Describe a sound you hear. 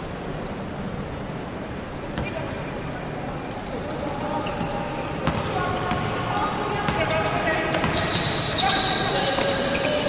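A basketball bounces on the floor as a player dribbles.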